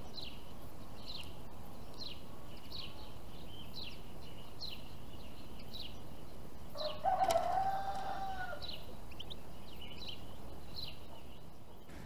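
Small birds chirp in short, repeated calls.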